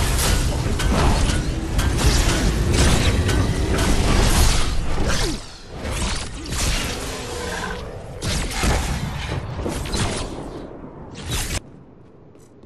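Game combat sounds clash and blast loudly.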